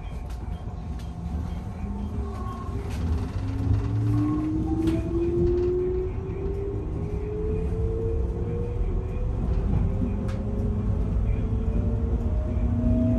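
A train's electric motor hums and rises in pitch as the train speeds up.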